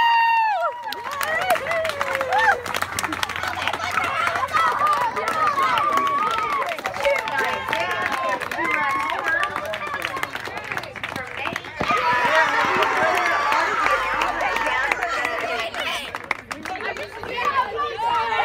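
A crowd of children cheers and chatters in celebration.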